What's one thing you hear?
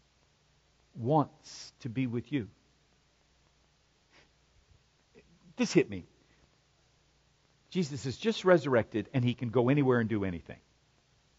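A middle-aged man speaks with animation into a microphone, in bursts with pauses.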